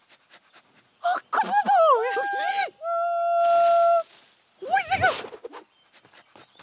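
A young man talks with animation in a cartoonish voice.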